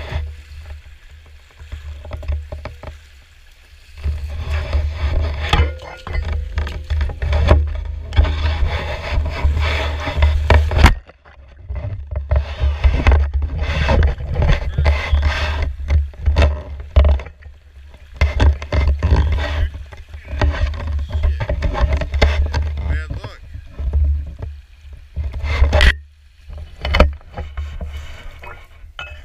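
Water splashes and sloshes as someone wades through a shallow stream.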